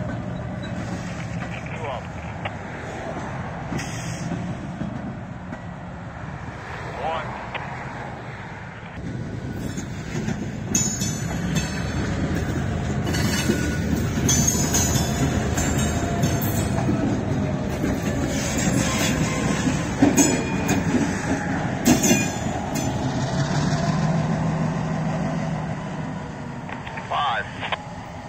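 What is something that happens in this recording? Freight cars rumble and clatter along the rails close by.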